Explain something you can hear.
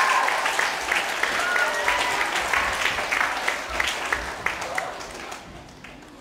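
A group of children chant loudly together in an echoing hall.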